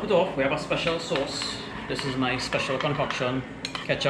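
A spoon stirs and clinks against a bowl.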